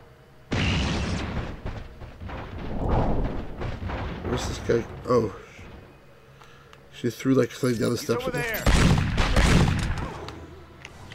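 A middle-aged man talks with animation into a microphone, close by.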